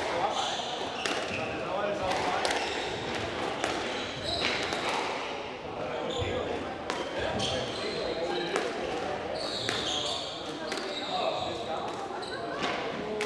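A squash ball thwacks sharply off rackets and walls in an echoing hall.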